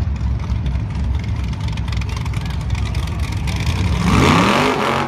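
A heavy engine idles with a deep, uneven rumble.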